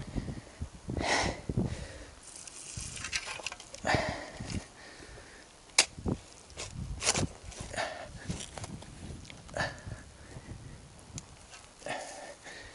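A shovel scrapes and digs into soil.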